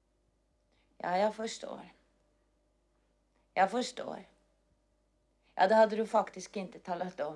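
A young woman speaks softly into a telephone, close by, in short phrases.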